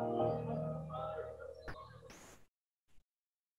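A piano plays a lively passage in an echoing room, then the last notes ring out and die away.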